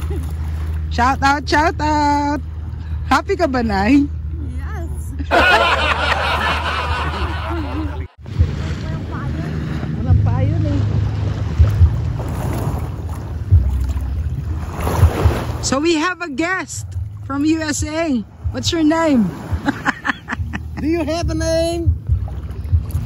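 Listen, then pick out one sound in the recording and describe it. An elderly woman talks and laughs close by.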